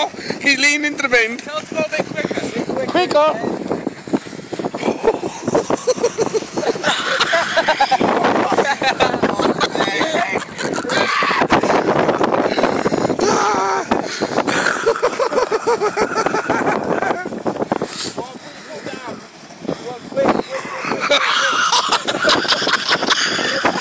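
A young man laughs and shouts nearby, outdoors.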